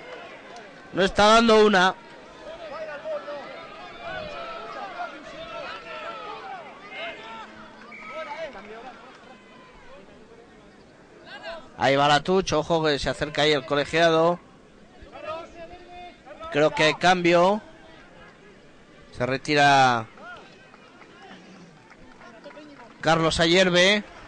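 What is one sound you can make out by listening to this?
A crowd of spectators murmurs outdoors in the distance.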